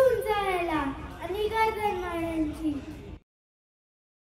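A young girl speaks with animation into a microphone, heard through a loudspeaker.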